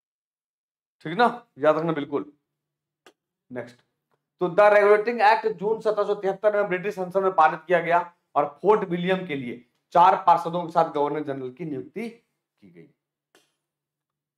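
A man speaks calmly and clearly into a close microphone, explaining.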